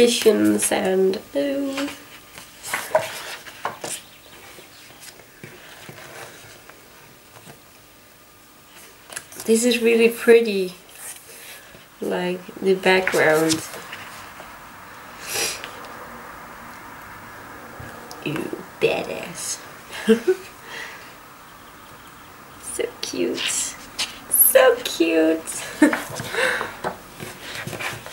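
Glossy pages rustle and flap as a book's pages are turned.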